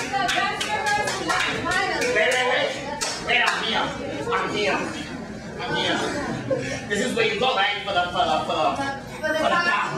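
A woman talks with animation.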